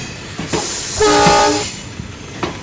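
A train horn sounds briefly.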